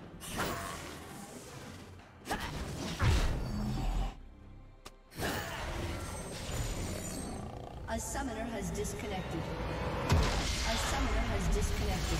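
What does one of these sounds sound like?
Video game spell effects crackle and boom in a fight.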